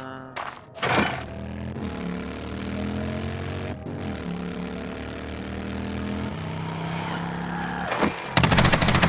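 A motorbike engine hums steadily and changes pitch as it rides.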